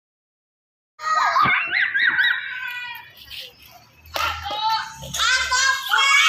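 Young children shout and chatter excitedly nearby.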